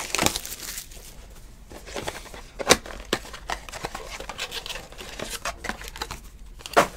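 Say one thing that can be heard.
Foil wrapping crinkles and tears as a card pack is ripped open.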